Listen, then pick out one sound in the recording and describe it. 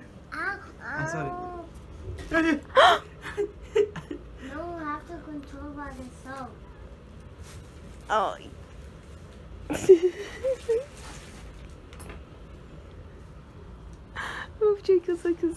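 A young child chatters excitedly close by.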